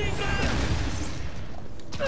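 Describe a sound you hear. Glass shatters with a crash.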